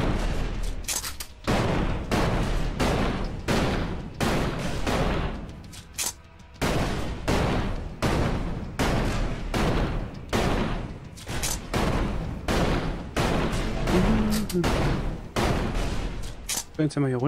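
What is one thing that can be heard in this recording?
A pistol fires repeated loud shots.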